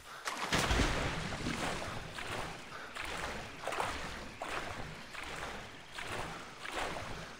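Water sloshes with steady, rhythmic swimming strokes.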